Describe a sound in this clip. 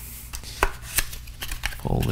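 A small box is tapped and handled with light clicks close by.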